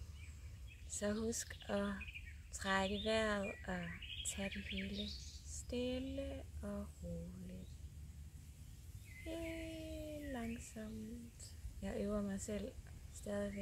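A woman sings close by.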